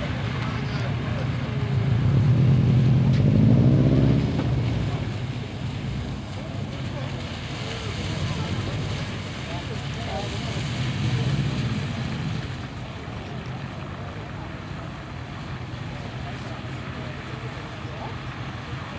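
Tyres hiss on a wet surface.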